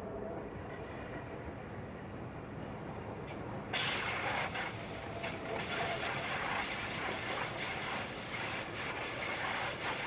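Wheels clatter over rail joints.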